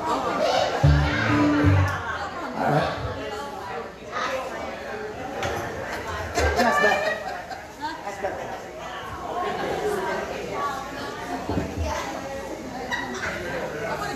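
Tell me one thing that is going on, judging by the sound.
An acoustic guitar is strummed and plucked.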